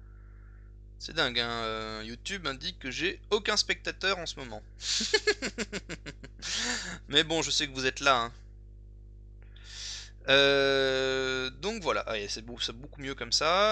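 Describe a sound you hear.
A young man talks calmly and closely into a microphone.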